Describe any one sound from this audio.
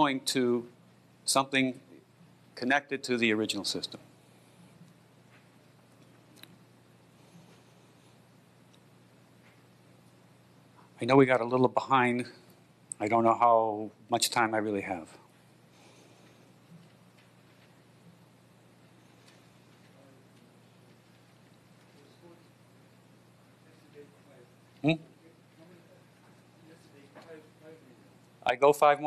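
A man speaks calmly through a microphone, with long pauses.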